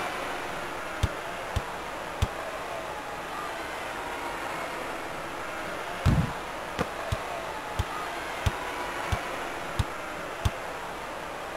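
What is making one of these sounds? A basketball bounces on a hard court, thumping in a slow rhythm.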